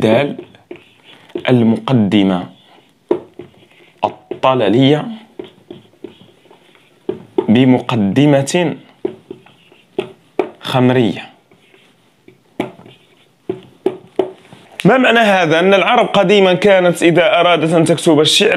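A young man speaks calmly and clearly, close by, in short phrases with pauses.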